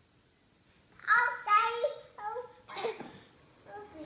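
A toddler girl laughs and squeals.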